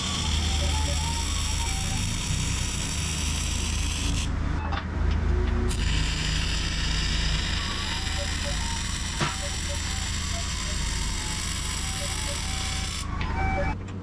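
An arc welder hisses and crackles steadily.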